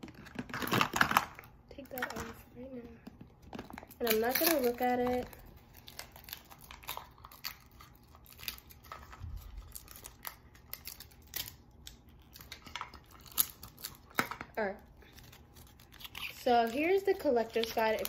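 Plastic packaging crinkles and rustles as hands unwrap it.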